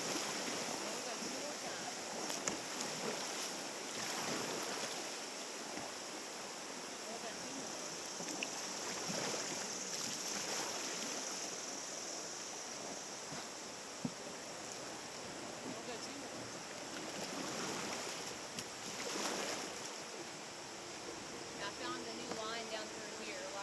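Paddles splash in the water now and then.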